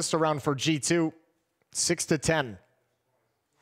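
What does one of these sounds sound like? A young man speaks quickly and with animation into a headset microphone.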